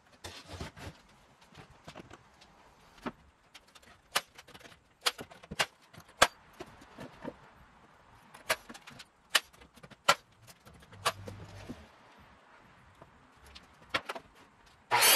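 Wooden boards knock and clatter against each other.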